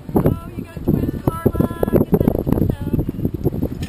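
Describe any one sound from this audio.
A man shouts from a nearby sailboat.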